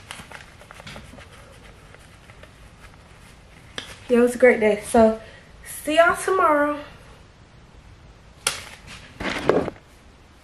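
Paper bills rustle as they are fanned.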